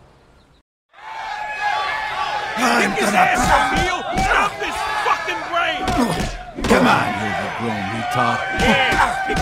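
A crowd of men cheers and shouts loudly.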